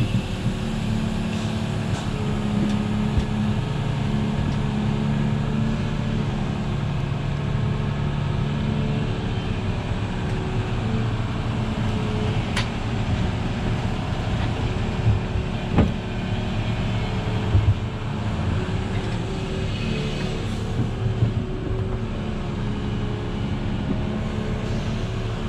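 A diesel excavator engine rumbles steadily and revs as the arm swings.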